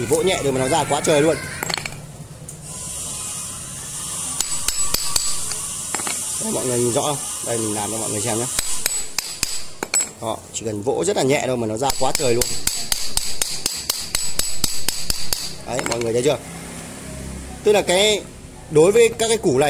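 A metal pipe scrapes and knocks against a concrete floor.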